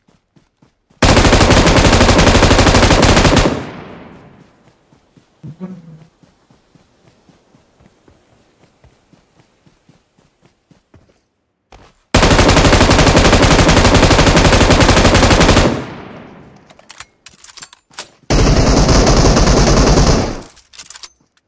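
A machine gun fires in long, rapid bursts.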